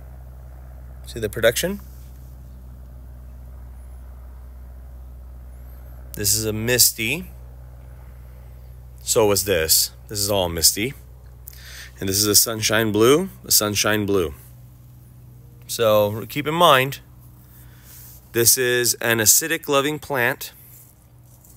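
A man talks calmly over an online call, in short bursts with pauses.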